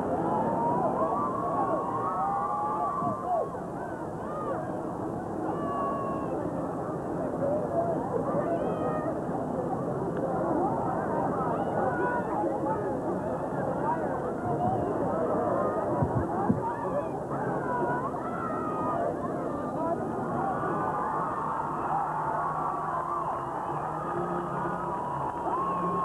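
A large crowd cheers and chatters outdoors.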